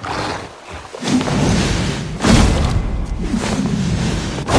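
A wolf snarls and growls close by.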